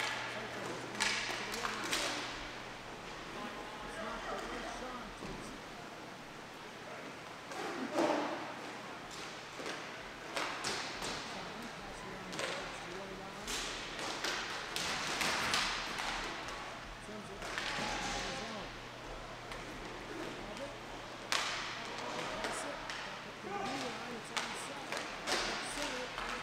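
Hockey sticks clack against a ball and each other.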